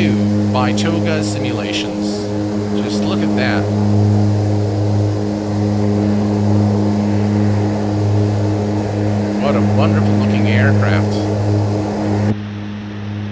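Twin propeller engines drone steadily outside a small plane.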